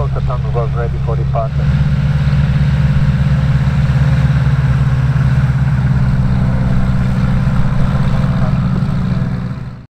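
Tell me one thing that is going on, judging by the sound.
Propeller engines of a small plane drone loudly and steadily nearby.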